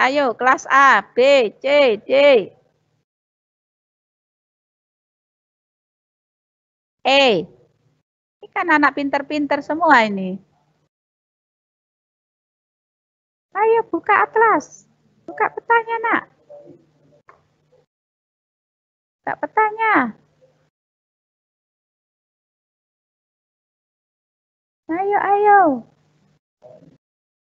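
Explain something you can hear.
A middle-aged woman speaks calmly in bursts through an online call.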